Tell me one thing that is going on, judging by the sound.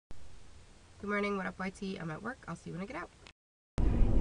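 A young woman speaks calmly, close to the microphone.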